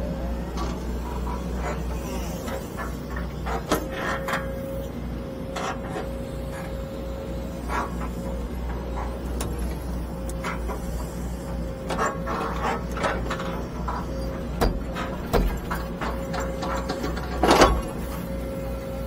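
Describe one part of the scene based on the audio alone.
An excavator bucket scrapes and digs into dirt with clunks and knocks.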